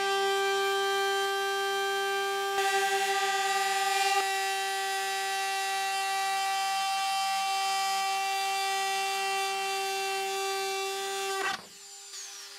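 A power rotary tool whines at high speed, cutting through plastic.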